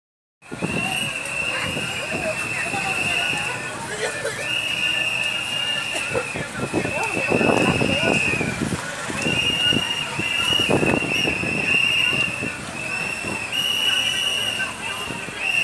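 A crowd of men and women talk and shout outdoors.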